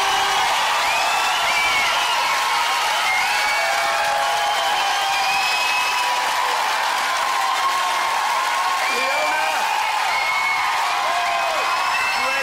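Shrill whistles rise from a crowd.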